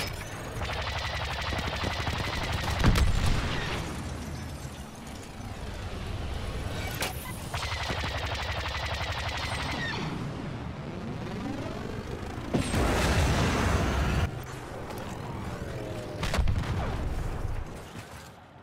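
A starfighter's engines roar as it flies.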